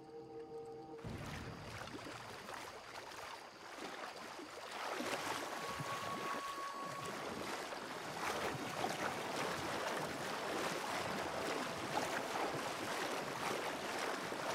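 Footsteps splash steadily through shallow water.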